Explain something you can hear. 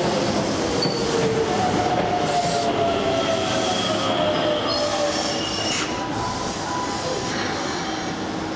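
Train brakes squeal as the train slows.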